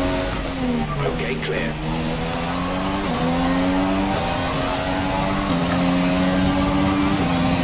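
Gear changes cut in with quick dips in a racing car engine's pitch.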